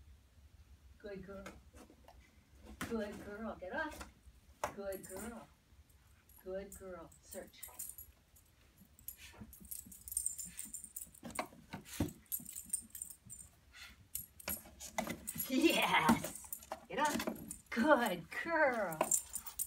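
A woman talks calmly and encouragingly to a dog nearby.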